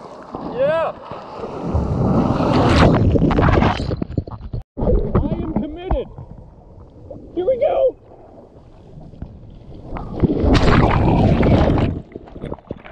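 A wave breaks and rushes with a loud roar.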